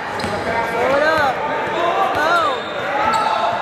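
Sneakers squeak sharply on a hard wooden floor.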